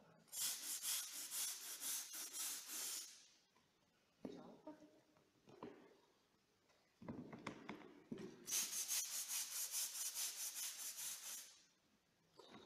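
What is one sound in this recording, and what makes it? A stiff brush scrubs wet paving stones in quick, rhythmic strokes.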